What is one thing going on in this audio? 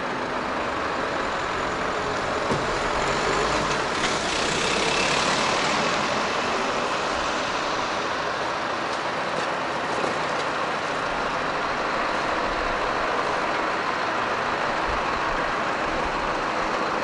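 Vehicle engines idle and rumble nearby.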